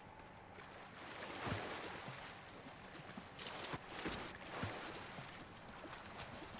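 Water splashes as a body dives in and swims.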